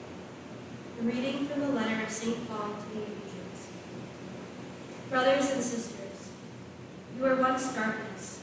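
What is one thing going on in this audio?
A young woman reads out calmly through a microphone in an echoing room.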